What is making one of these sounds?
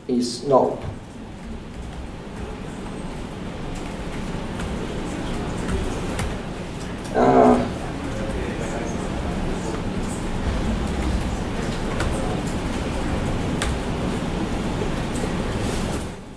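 Keys click on a laptop keyboard.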